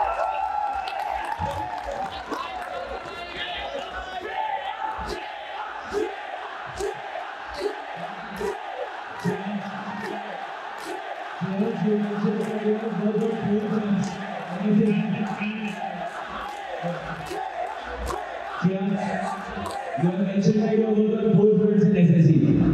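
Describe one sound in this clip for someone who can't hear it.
A young man speaks into a microphone in an echoing hall.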